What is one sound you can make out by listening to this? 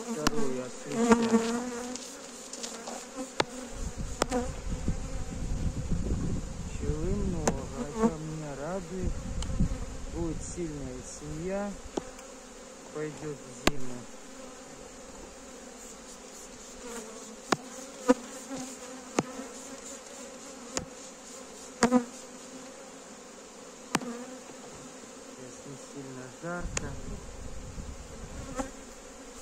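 Bees buzz steadily all around.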